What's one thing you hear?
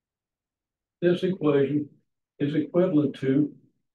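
An elderly man speaks calmly, as if lecturing.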